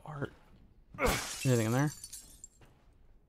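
A knife strike shatters a glass cabinet pane.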